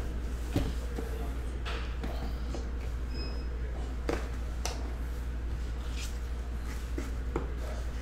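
A cardboard box lid slides and knocks as it is opened.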